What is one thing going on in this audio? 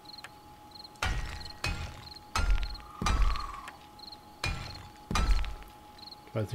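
A hammer knocks repeatedly against stone.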